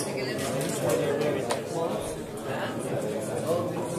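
Plastic game pieces click against a wooden board.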